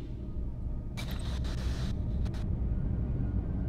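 A wooden drawer slides open with a scrape.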